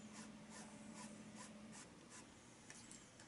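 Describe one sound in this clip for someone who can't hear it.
A paintbrush brushes against a canvas in short strokes.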